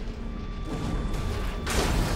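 An explosion bursts with a sharp bang.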